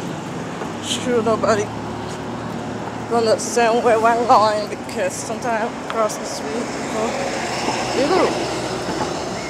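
A woman speaks close to a phone microphone in short bursts.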